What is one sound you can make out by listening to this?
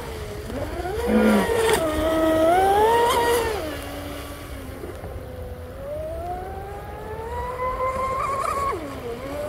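A model boat's motor whines, rising and falling in pitch as the boat speeds across the water.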